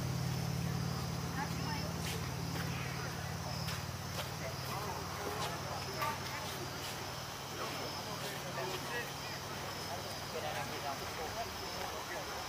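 Men call out across an open field outdoors.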